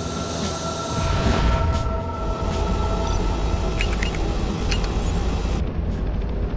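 A low machine hum drones steadily.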